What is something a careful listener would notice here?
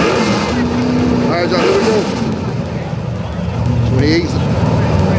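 Loud race car engines idle and rumble with a deep, choppy roar.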